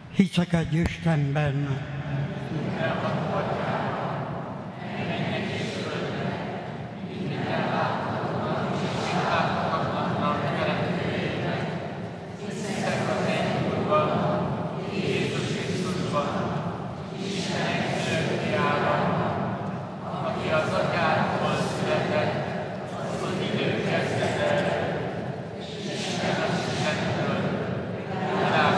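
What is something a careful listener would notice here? An older man sings through a microphone.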